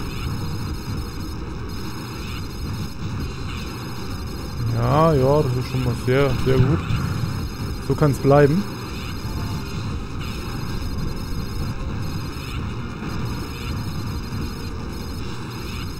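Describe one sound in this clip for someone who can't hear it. An electric beam crackles and hums steadily.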